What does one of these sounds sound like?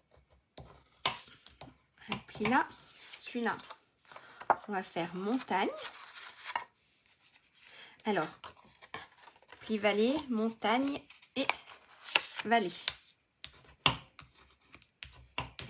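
A stick scrapes along a paper crease.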